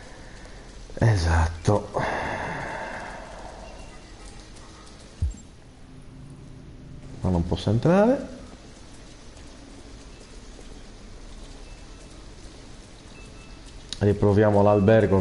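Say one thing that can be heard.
A man speaks with animation into a microphone, close up.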